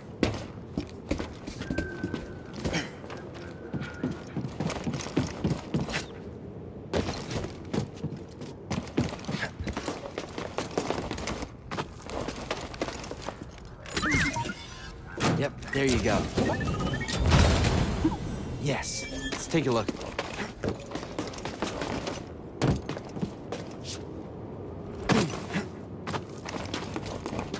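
Footsteps clank on metal and thud on rock.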